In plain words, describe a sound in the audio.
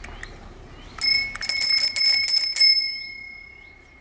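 A bicycle bell rings rapidly several times, then its ring fades away.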